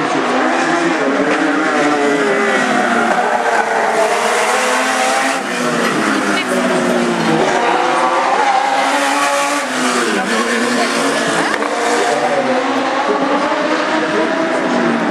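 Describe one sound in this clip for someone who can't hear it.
Racing car engines roar loudly, rising and falling in pitch as the cars speed past.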